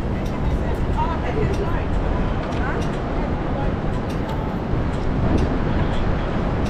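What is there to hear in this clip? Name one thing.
City traffic rumbles steadily close by, outdoors.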